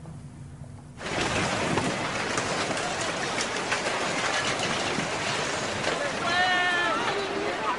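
Floodwater rushes loudly, churning debris.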